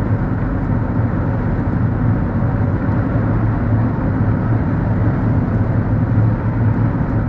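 Tyres roll with a low rumble on the road.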